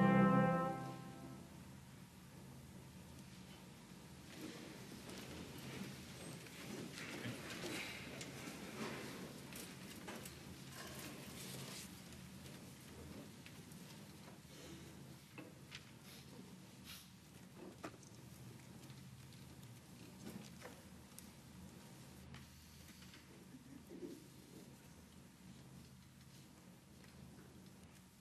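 Clothing rustles and feet shuffle in a large echoing hall.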